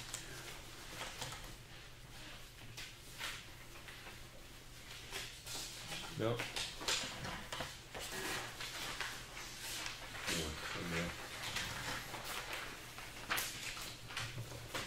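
Papers rustle and shuffle on a table close by.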